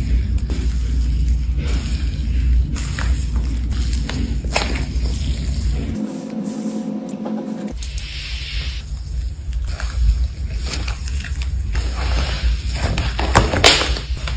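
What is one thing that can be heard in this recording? Hands squish and squeeze soft, wet slime with sticky crackles.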